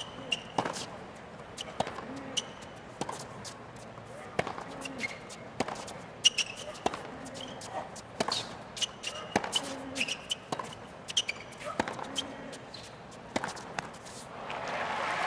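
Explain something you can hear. Tennis shoes squeak and scuff on a hard court.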